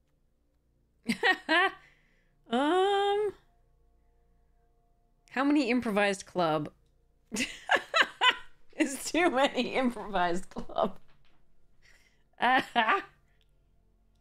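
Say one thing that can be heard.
A young woman talks and laughs with animation, close to a microphone.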